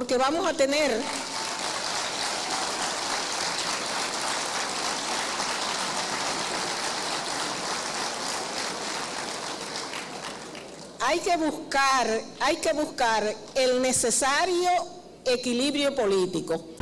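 A woman speaks with animation into a microphone in a large hall.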